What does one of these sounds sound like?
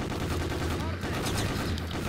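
A gun fires with a sharp bang.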